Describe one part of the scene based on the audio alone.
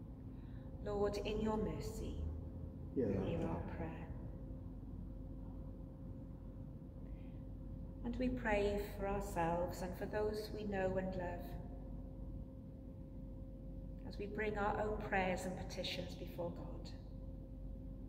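A middle-aged woman reads aloud slowly and calmly in a large echoing hall.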